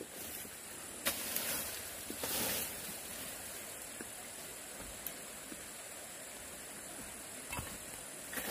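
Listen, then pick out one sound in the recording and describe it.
Dry bamboo leaves rustle and crackle underfoot.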